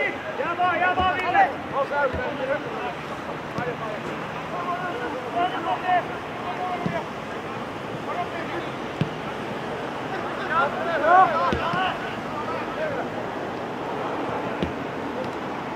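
A football thuds off a foot now and then.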